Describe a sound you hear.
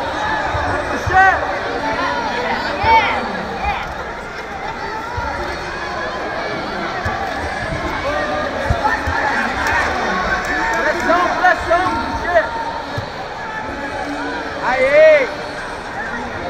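Spectators whistle and yell loudly now and then.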